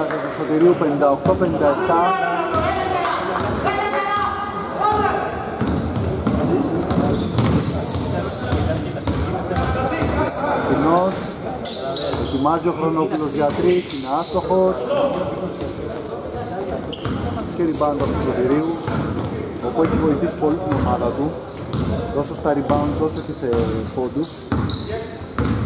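A basketball bounces on a wooden floor with echoing thuds.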